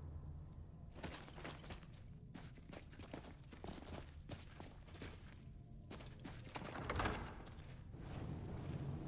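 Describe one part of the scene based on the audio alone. Footsteps echo on a stone floor.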